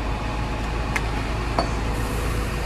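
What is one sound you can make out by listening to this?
Metal clanks as a worker handles a hose fitting.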